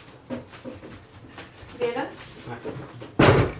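Young women talk briefly nearby.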